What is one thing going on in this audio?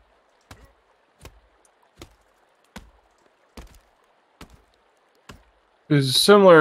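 An axe chops into a tree trunk with regular knocks.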